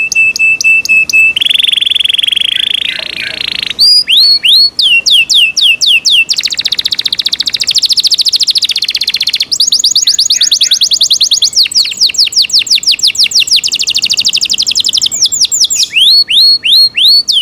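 A canary sings loudly and close by, with rapid trills, rolling chirps and sweeping whistles.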